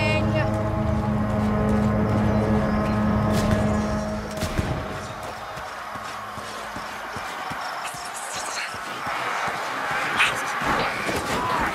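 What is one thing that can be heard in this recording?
Footsteps run quickly over dirt and wooden boards.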